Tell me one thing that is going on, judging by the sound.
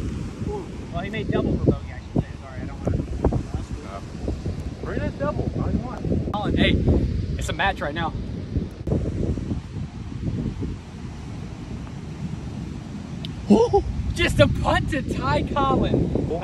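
Young men talk and laugh close by with animation.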